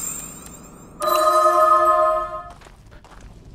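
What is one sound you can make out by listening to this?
A magic spell rings out with a bright chiming tone.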